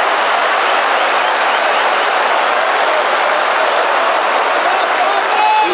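Fans whistle sharply among the crowd.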